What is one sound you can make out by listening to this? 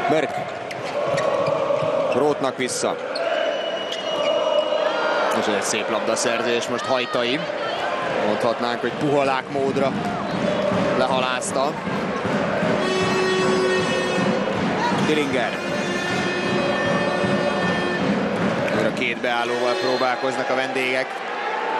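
A ball bounces on a hard court.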